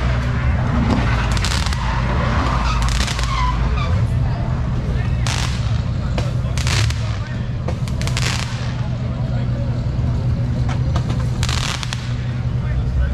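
Fireworks crackle and bang nearby.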